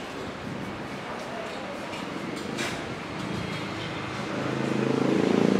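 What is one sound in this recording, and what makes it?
People chatter quietly in the background of a room.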